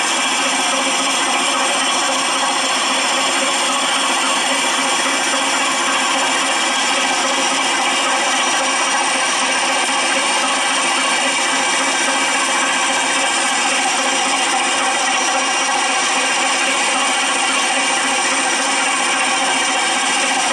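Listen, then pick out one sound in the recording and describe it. A steam locomotive hisses steadily while standing idle.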